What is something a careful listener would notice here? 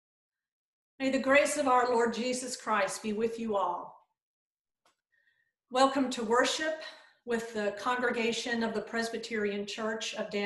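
A middle-aged woman speaks calmly into a nearby microphone.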